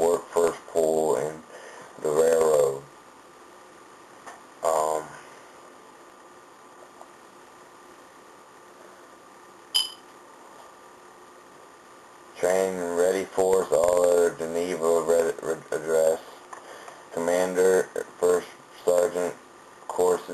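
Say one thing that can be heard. A young man speaks calmly and close, heard through a microphone, pausing between phrases.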